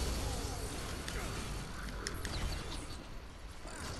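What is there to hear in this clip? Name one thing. Electric energy crackles and hums in a video game.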